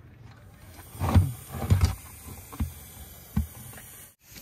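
A plastic bucket bumps against metal.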